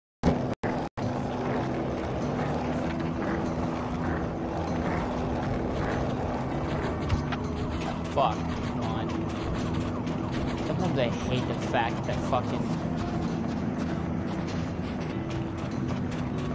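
Skateboard wheels roll steadily over pavement.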